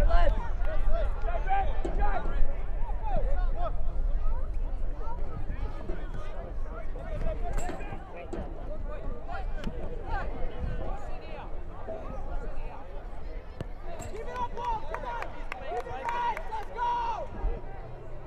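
Spectators chatter and call out from the sideline.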